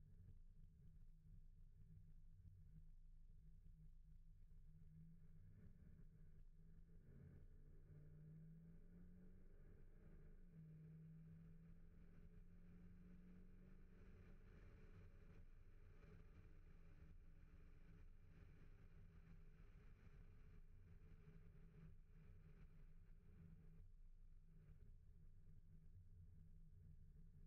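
A car engine hums low and steady while driving, with its pitch shifting as it changes speed.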